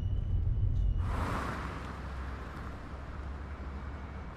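A car whooshes past.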